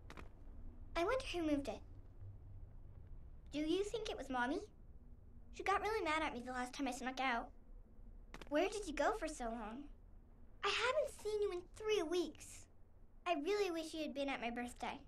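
A young girl speaks calmly, with pauses.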